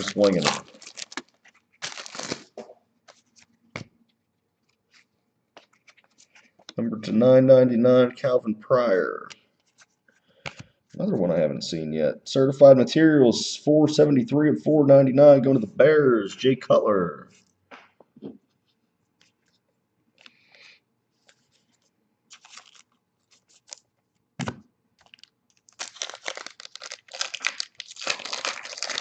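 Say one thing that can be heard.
A foil card pack crinkles and tears open in someone's hands.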